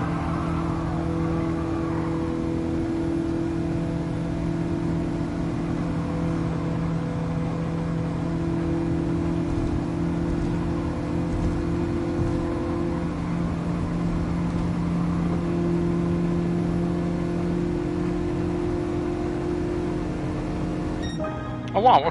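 A car engine drones steadily at high revs.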